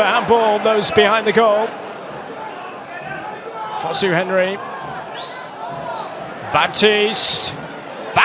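A football is struck hard with a thud.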